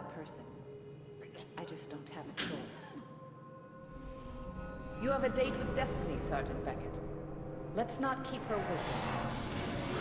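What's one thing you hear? A young woman speaks calmly and menacingly, close by.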